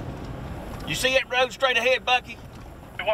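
A man speaks with animation into a handheld radio microphone, close by.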